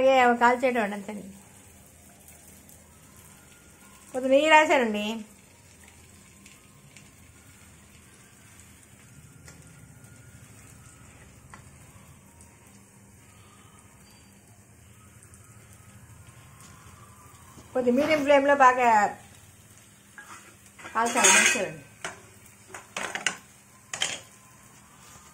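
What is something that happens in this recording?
Oil sizzles softly in a frying pan.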